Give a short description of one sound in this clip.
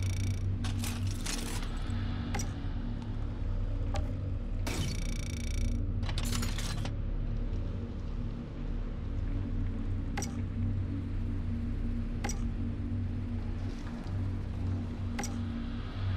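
Soft interface clicks sound now and then as menu selections change.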